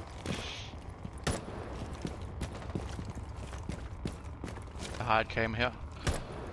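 Footsteps thud steadily on hard ground.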